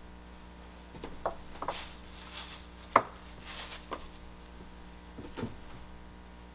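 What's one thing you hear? Hard objects knock and clatter on a workbench.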